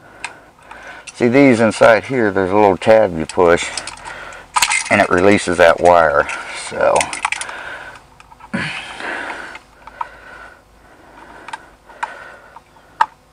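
Stiff wires scrape and click against a metal box.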